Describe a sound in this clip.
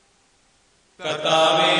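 A woman sobs and wails with grief close by.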